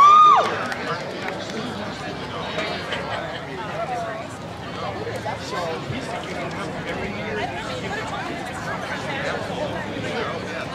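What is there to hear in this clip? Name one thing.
A crowd of adults chatters outdoors.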